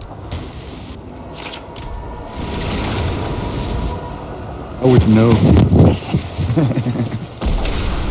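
A magic barrier crackles and hums with bright, whooshing energy.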